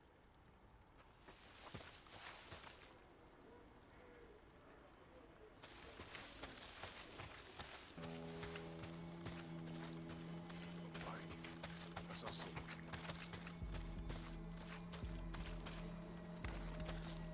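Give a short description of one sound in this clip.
Footsteps rustle through dense brush.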